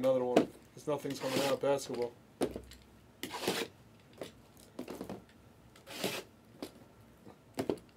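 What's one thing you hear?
Plastic wrap crinkles as boxes are handled.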